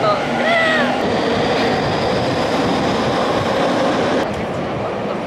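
A gust of wind rushes past loudly.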